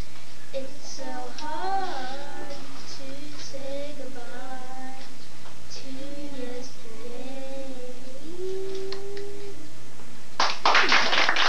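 A boy speaks to a class in a small voice.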